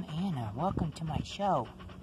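A dog pants up close.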